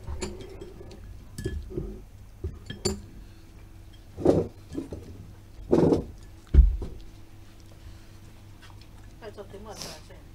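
Chopsticks clink against bowls.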